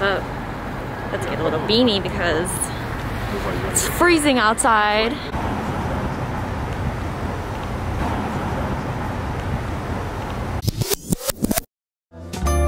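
City traffic rumbles steadily in the background.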